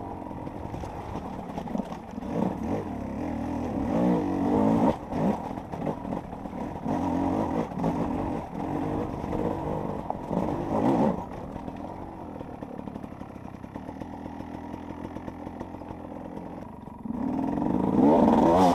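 A dirt bike engine revs hard and rises and falls in pitch.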